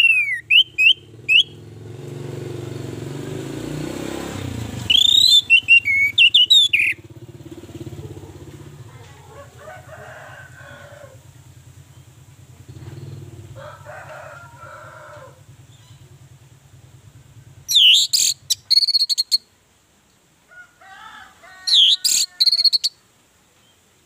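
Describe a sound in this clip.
An orange-headed thrush sings in loud whistled bursts.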